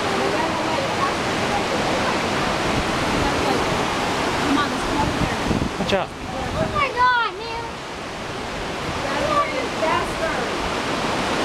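A rushing creek splashes steadily over rocks outdoors.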